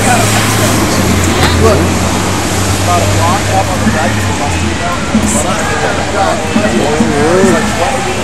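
A crowd of adults chatters outdoors nearby.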